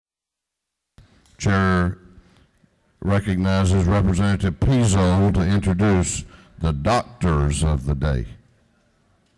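A middle-aged man speaks clearly into a microphone, heard through a loudspeaker system in a large room.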